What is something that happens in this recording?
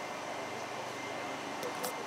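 A fire extinguisher sprays with a steady hiss.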